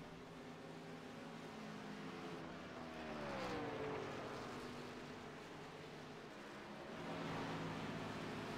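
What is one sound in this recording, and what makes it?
Racing truck engines roar at high speed.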